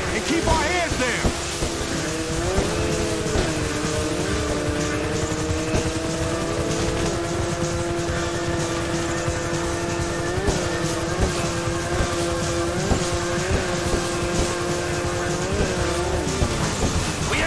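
Water sprays and hisses behind a speeding jet ski.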